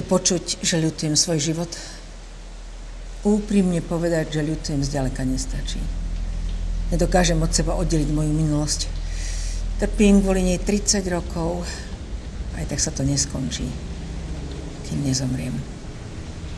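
A woman speaks calmly and earnestly, close by.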